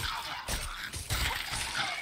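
A sword clashes against a skeleton.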